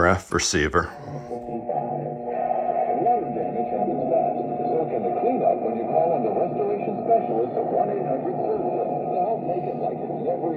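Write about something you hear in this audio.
An old loudspeaker plays music, sounding thin and muffled.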